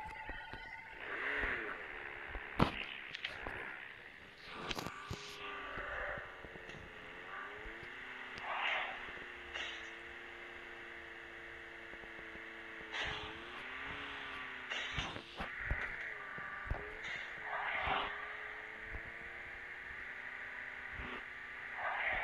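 A car engine hums and revs as the car drives over rough ground.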